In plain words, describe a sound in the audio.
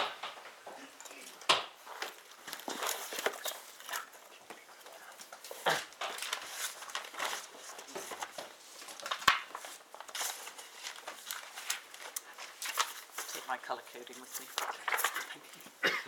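Papers rustle as a man gathers them.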